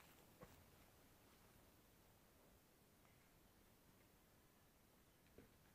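Footsteps crunch on dry grass and dirt close by.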